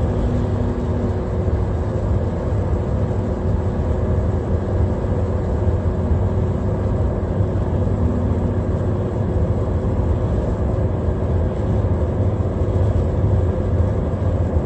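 A car engine hums steadily with road noise from inside the car.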